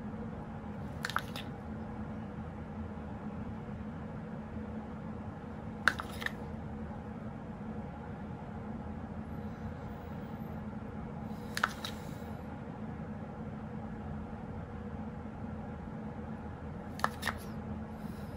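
A plastic spoon taps against a plastic tub.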